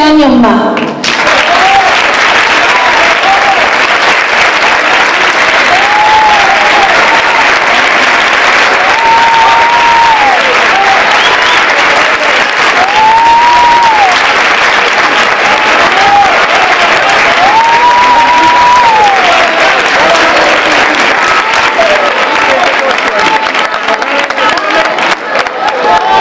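A large crowd applauds and cheers loudly in an echoing hall.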